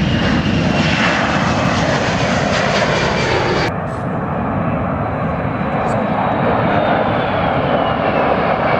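A jet plane roars loudly overhead as it climbs away.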